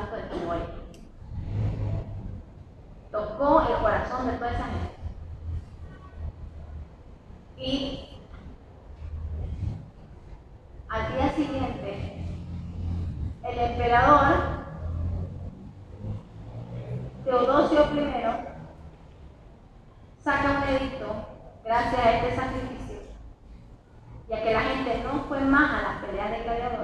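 A woman speaks with animation through a microphone and loudspeaker, in a large echoing space.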